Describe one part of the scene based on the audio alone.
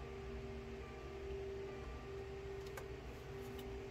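A card slides and taps on a table.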